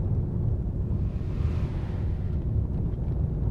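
Another bus rushes past close by.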